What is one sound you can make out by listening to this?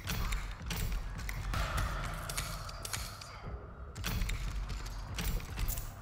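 Metal clicks and scrapes as a lock is picked.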